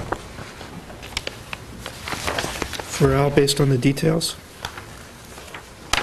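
Papers rustle and crinkle on a table.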